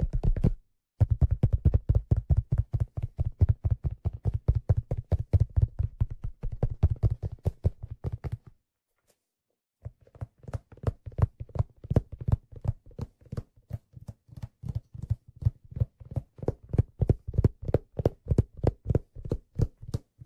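A hand drum is struck rapidly with the hands, ringing out in deep, mellow tones.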